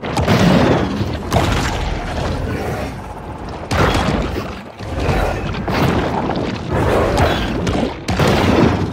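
A deep, muffled underwater rumble goes on throughout.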